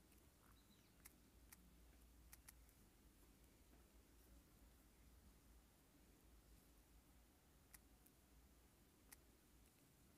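A finger taps on a phone's touchscreen keyboard.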